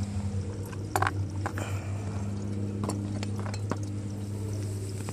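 Small metal parts click as a hand handles them.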